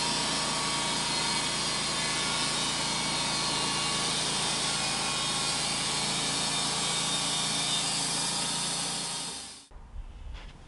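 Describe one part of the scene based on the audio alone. A sawmill blade cuts through a log with a loud, steady whine.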